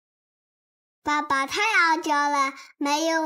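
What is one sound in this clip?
A young boy speaks in a high voice.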